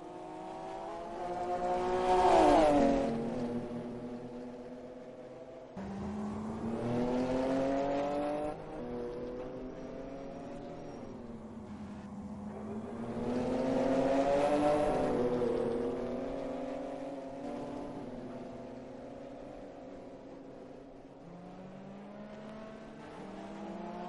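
Racing car engines roar, revving up and down.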